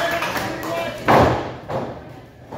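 A wrestler lands on a ring mat with a heavy thud.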